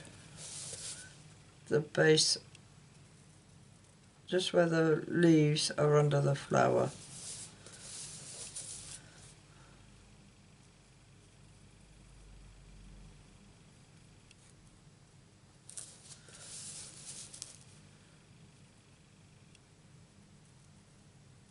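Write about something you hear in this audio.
A marker pen squeaks and scratches across paper in short strokes.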